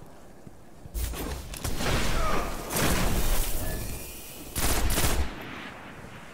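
A gun in a video game fires several shots.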